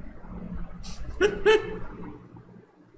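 A young man laughs briefly close by.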